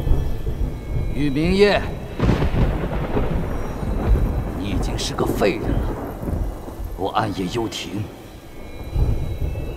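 A man speaks sternly and calmly, close by.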